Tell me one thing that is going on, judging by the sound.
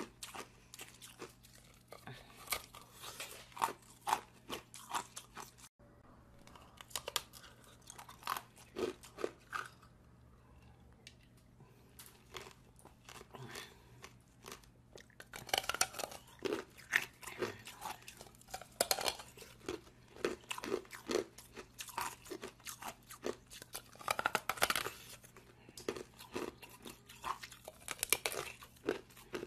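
A woman bites and crunches into a hard jelly close to a microphone.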